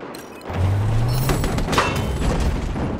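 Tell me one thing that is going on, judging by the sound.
A heavy machine gun fires in bursts.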